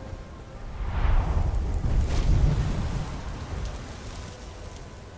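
A huge creature lands with a loud, rumbling crash.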